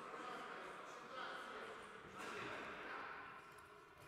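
A ball is kicked with a sharp thud.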